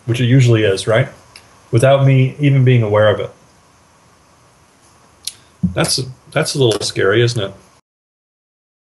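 A middle-aged man speaks calmly into a computer microphone, heard close up as if over an online call.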